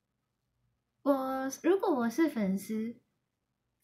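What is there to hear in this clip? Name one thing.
A young woman speaks brightly and close to a microphone.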